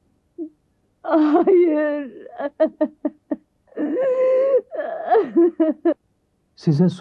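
A woman wails and cries loudly.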